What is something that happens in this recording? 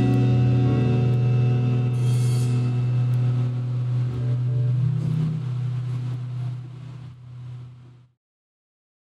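An electric guitar chord rings out and fades to silence.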